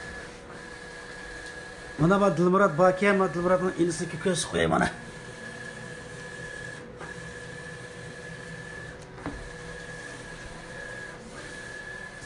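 A large printer hums and whirs steadily.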